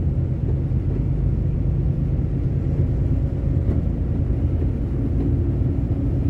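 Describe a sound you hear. A windscreen wiper sweeps once across the glass.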